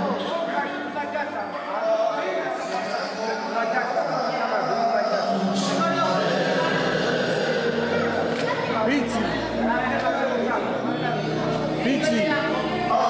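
A man sings through a microphone over loudspeakers in an echoing room.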